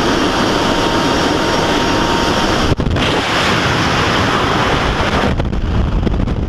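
Wind rushes loudly and roars.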